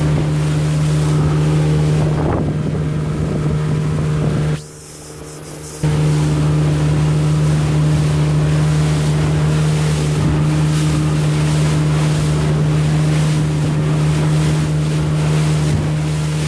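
Wind buffets loudly.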